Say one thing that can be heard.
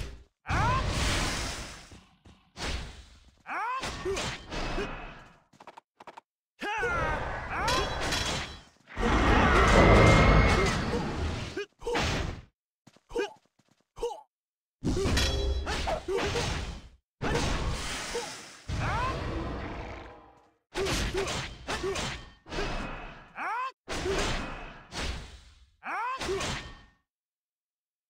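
Magic spell effects whoosh and crackle in bursts during a fantasy battle.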